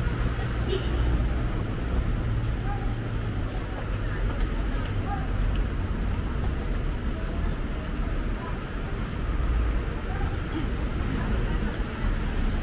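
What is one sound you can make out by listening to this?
Traffic rumbles steadily on a road below.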